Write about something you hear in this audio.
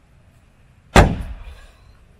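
A ball thuds hard close by.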